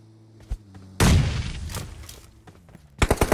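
A grenade explodes with a loud boom.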